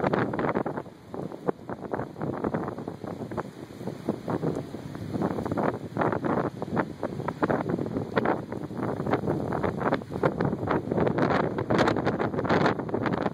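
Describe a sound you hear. Strong wind gusts and roars outdoors, buffeting loudly.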